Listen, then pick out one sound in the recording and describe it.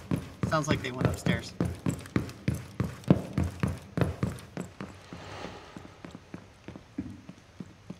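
Footsteps thud quickly and steadily on a wooden floor.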